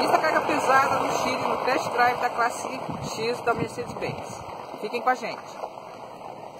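A middle-aged woman speaks calmly and close by, outdoors.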